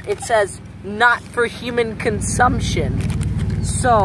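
A plastic wrapper crinkles in a boy's hands.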